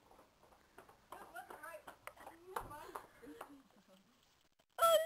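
Two young women laugh and shout as they run.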